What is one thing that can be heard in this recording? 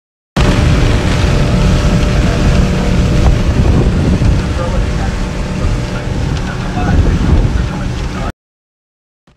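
Wind blows hard against a microphone.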